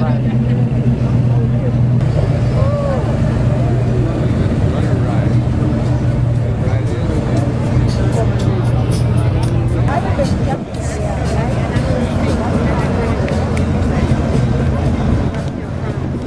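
A vintage car's engine rumbles low as it rolls slowly past.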